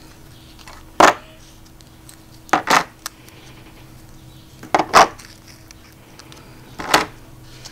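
Metal-rimmed tokens clack and click against each other as they are set down.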